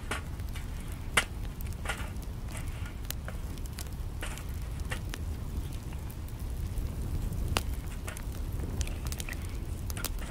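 Wooden sticks knock against a metal stove as they are dropped in.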